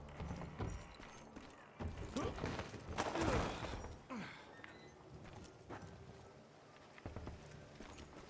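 Footsteps run across dirt and wooden boards.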